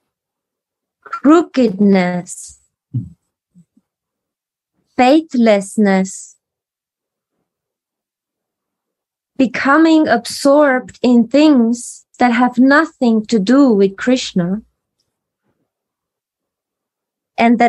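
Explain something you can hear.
A young woman chants or reads aloud in short phrases, close to the microphone, heard through an online call.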